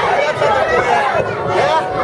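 A man shouts loudly at the crowd.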